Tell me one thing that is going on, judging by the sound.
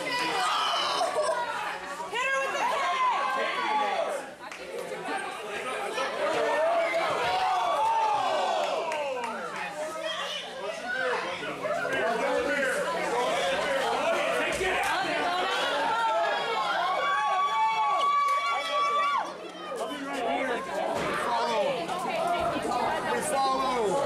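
A crowd shouts and cheers excitedly.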